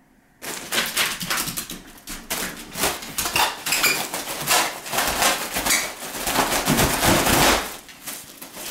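A foil balloon crinkles and rustles loudly.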